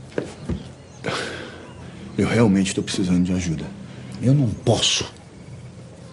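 A young man speaks softly and earnestly up close.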